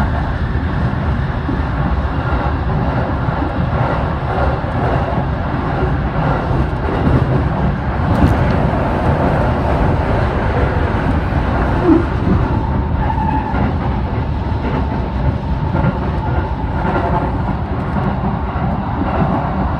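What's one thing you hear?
An electric commuter train rumbles along the track at speed, heard from inside a carriage.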